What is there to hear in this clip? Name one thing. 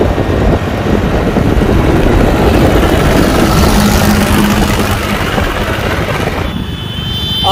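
Wind rushes loudly past a moving vehicle.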